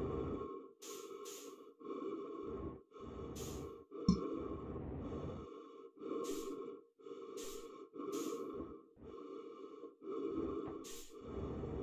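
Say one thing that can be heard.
A man talks calmly and close through a microphone.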